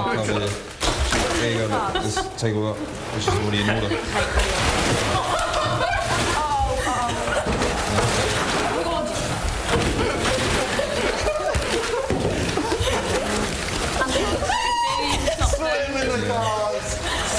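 Young men and women shout and laugh excitedly.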